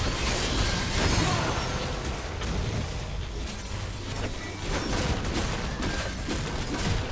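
Game weapons strike with sharp hits.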